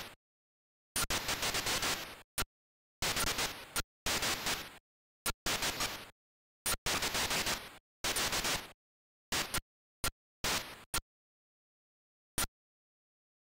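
Harsh buzzy electronic bursts of gunfire fire in rapid rattling volleys.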